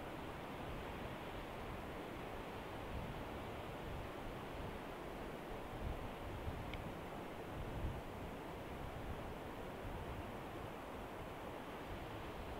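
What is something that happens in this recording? Wind blows hard and rumbles against a microphone outdoors.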